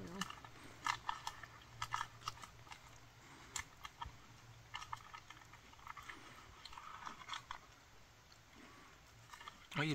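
A small animal nibbles and chews on a seed with quick, soft clicks.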